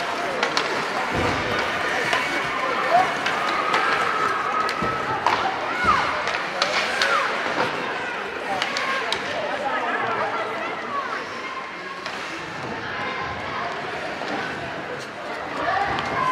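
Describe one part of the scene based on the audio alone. Skate blades scrape and hiss across the ice.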